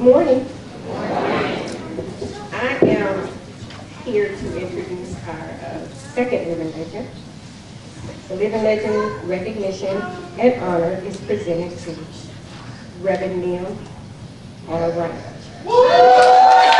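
A man speaks loudly through a microphone in a large echoing hall.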